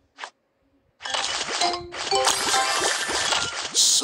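Game pieces burst with bright chiming, popping sounds.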